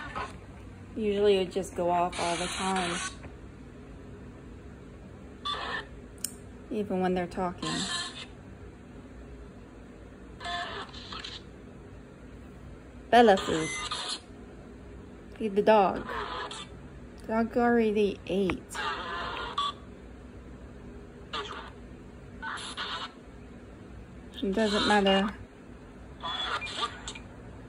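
A phone speaker plays short, choppy bursts of scanning radio sound.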